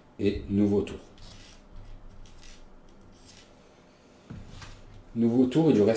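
A cardboard token scrapes softly across a table.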